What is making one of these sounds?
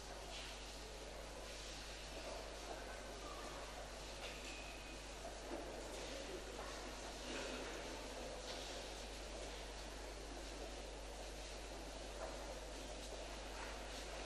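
A crowd of people murmurs quietly in a large echoing hall.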